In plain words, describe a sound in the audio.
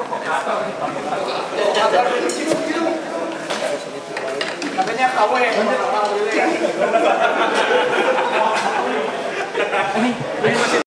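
Several men chat casually nearby.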